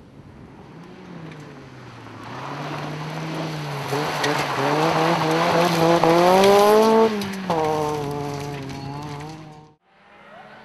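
Another rally car engine roars closer, rising in pitch, then fades away.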